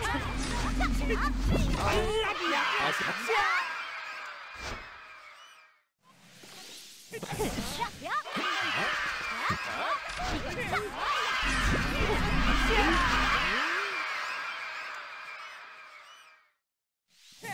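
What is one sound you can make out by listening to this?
Game music plays with bright chiming effects.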